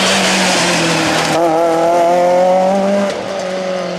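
Gravel sprays and crunches under spinning tyres.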